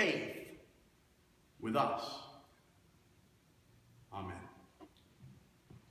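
A man speaks in short phrases, echoing in a large hall with long reverberation.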